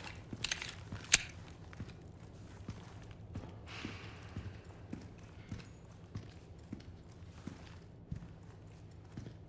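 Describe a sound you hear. Footsteps thud steadily on a stone floor.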